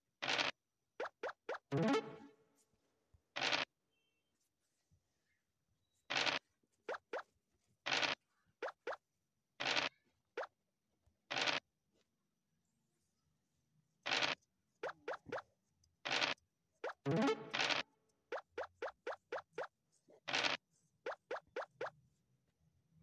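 Game pieces click as they hop from square to square.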